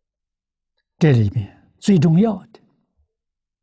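An elderly man speaks calmly, close to a microphone.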